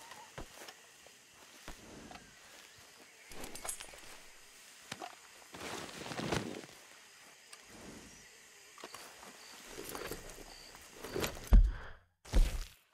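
A horse's hooves shuffle and thud on soft ground.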